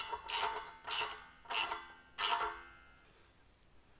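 A metal tool strikes metal four times, each blow ringing briefly.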